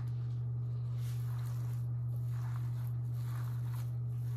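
Hands squish and knead a moist mixture in a bowl.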